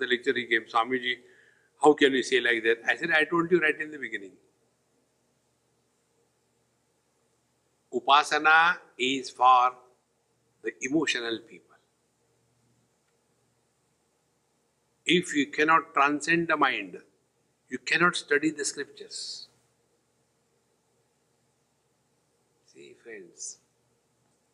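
An elderly man speaks calmly into a microphone, pausing often.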